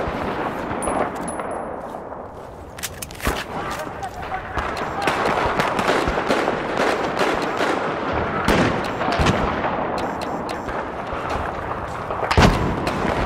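Gunfire and explosions crack and boom nearby in a loud, chaotic battle.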